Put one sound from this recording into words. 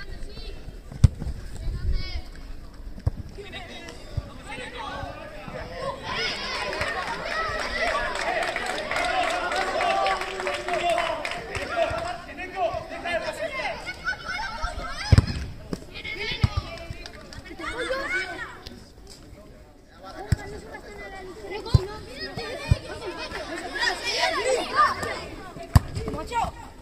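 A ball is kicked with sharp thuds outdoors.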